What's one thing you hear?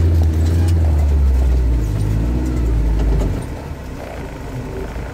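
Tyres crunch through slushy snow.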